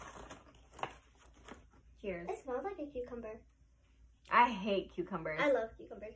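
Potato chips crunch as they are eaten.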